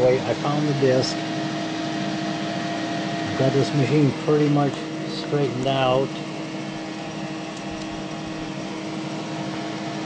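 Computer equipment hums steadily.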